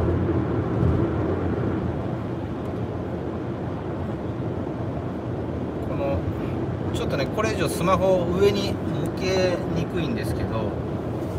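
A car engine hums and tyres roll steadily on a smooth road, heard from inside the car.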